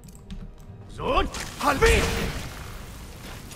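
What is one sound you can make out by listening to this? A magic spell crackles and hisses close by.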